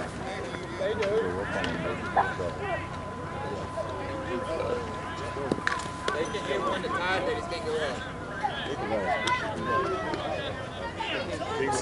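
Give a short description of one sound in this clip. Several men talk and call out across an open outdoor field.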